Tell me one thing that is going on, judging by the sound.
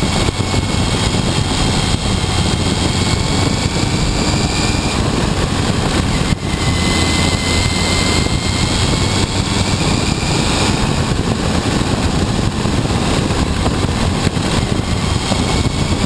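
A motorcycle engine rumbles loudly up close.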